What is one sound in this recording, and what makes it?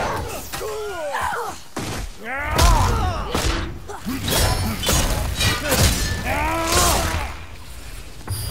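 Winged monsters screech with high, wavering cries.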